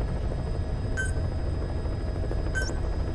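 A menu chime beeps twice.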